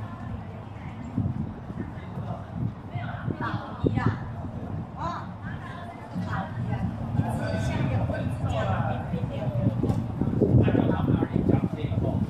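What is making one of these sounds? A crowd of people chatters outdoors at a distance.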